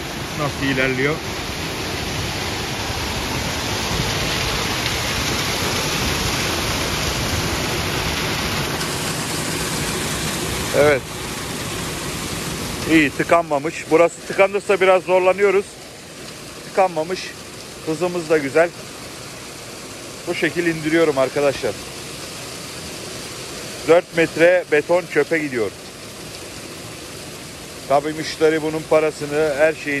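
Sand pours and hisses down a metal chute.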